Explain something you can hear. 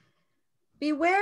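A middle-aged woman starts speaking over an online call.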